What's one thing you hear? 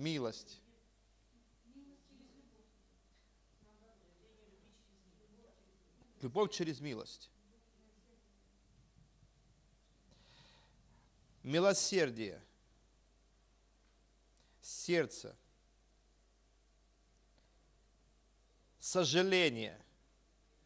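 A man speaks through a microphone in short bursts with long pauses.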